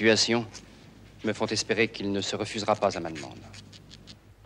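A man speaks calmly, close up.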